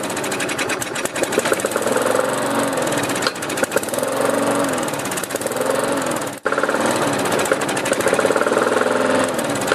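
A lawn mower engine sputters and misfires.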